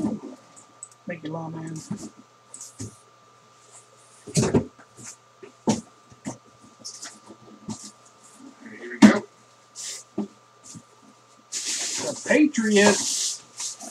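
A cardboard box scrapes and thumps as it is handled and opened.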